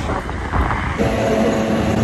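Fuel gushes from a pump nozzle into a tank.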